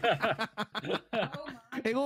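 A young man laughs.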